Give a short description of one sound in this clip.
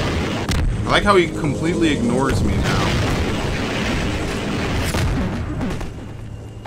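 A rocket explodes with a heavy boom.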